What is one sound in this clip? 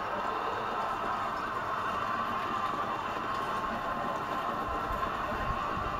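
Horses gallop past with thudding hooves.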